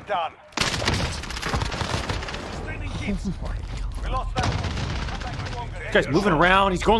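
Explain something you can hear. Gunshots ring out rapidly.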